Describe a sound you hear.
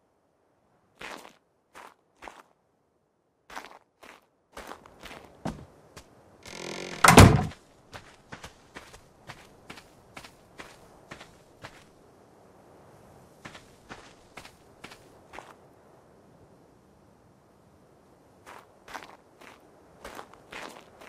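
Footsteps tread steadily over grass and stone.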